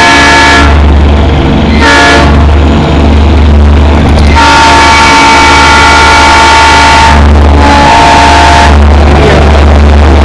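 A train horn blares loudly in long blasts.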